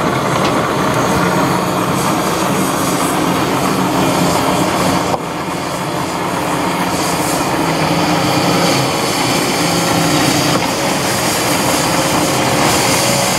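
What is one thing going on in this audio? Rubble clatters and crunches as a demolition grab breaks it.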